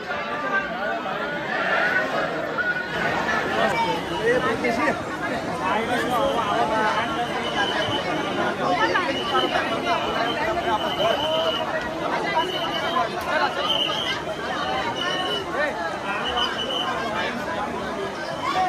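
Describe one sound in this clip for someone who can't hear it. A large crowd of men and women chatters and shouts loudly all around.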